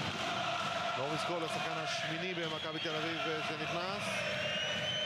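A crowd chants loudly in unison.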